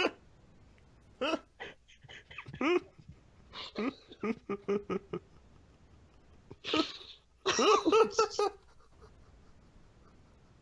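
A man laughs over a headset microphone.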